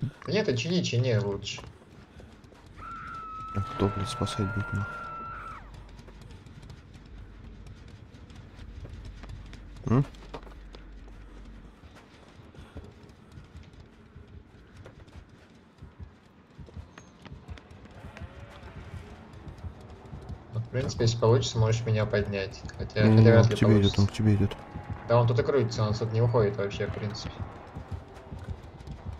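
Footsteps run quickly over dirt.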